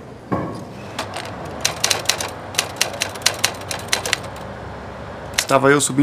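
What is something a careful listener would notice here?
Typewriter keys clack quickly.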